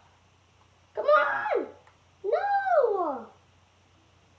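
A young boy cries out excitedly close by.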